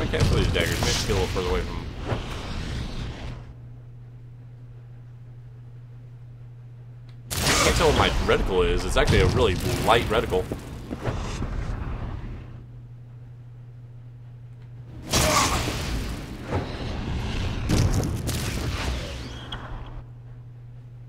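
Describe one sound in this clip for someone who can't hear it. Flames burst and roar in loud whooshes.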